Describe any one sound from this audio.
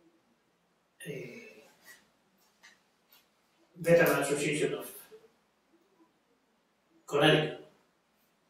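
An elderly man speaks calmly and slowly, close by, with pauses.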